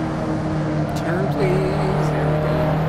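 A car engine changes gear with a brief dip and rise in pitch.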